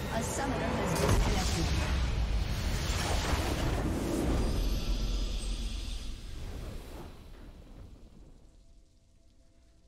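A deep, swelling victory fanfare sounds and fades away.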